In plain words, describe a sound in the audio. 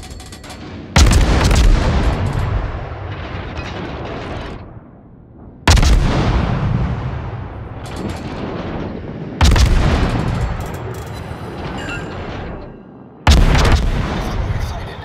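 Heavy ship guns fire in loud booming salvos that rumble slowly away.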